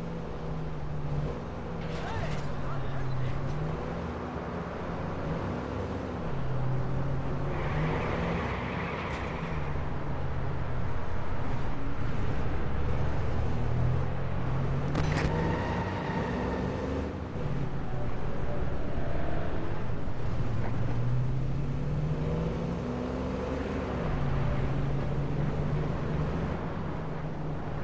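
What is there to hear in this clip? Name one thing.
A truck engine hums and revs up and down as it drives.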